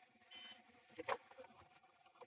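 A glove compartment latch clicks open.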